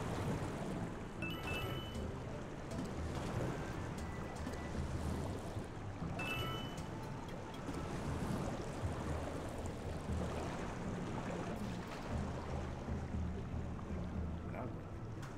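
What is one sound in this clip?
Cheerful video game music plays steadily.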